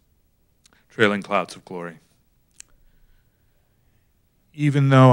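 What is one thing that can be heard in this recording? An older man speaks calmly into a microphone, pausing between phrases.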